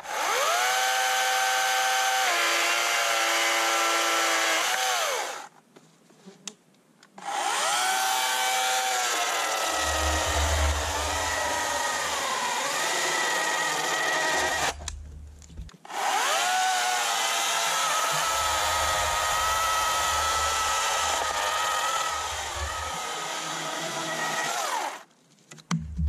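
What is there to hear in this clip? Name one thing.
An electric chainsaw whines loudly, speeding up and slowing down in bursts.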